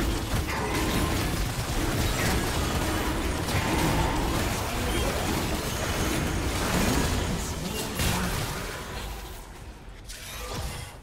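Magic spells crackle and burst in a fast fight.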